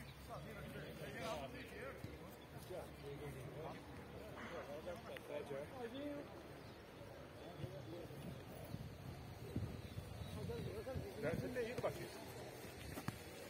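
Men shout to each other outdoors, some close and some far off.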